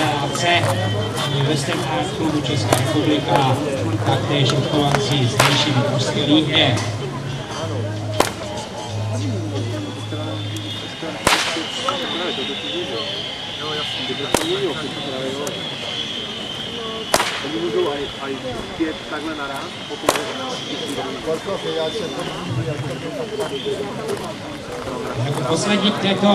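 A man talks loudly to a small crowd outdoors.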